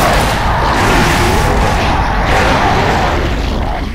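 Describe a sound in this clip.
Gunfire rattles in rapid bursts.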